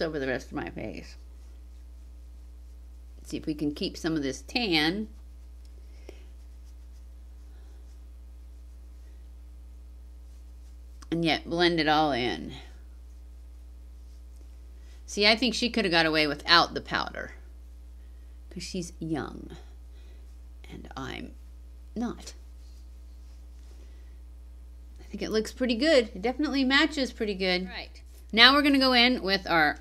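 A middle-aged woman talks calmly and close to a microphone, with pauses.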